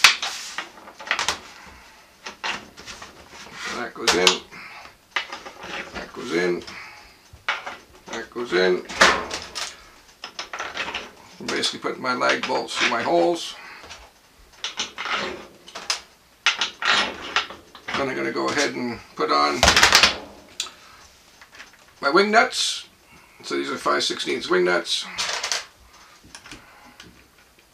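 Metal parts clink and tap on a metal table.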